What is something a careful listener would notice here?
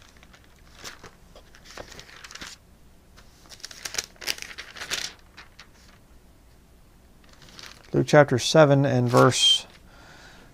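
Book pages rustle as a man leafs through them.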